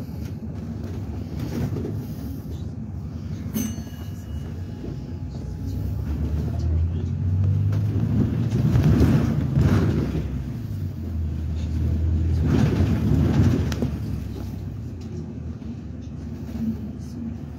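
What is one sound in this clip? A bus engine rumbles low as the bus drives along, heard from inside.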